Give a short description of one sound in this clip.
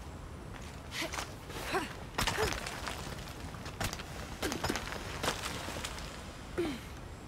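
Boots and hands scrape and knock against rock during a climb.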